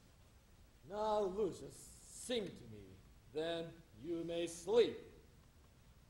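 A man reads aloud calmly.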